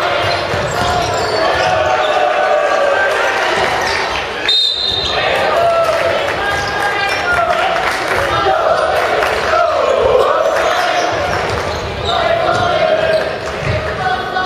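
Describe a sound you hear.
A group of young men shouts and cheers in a large echoing gym.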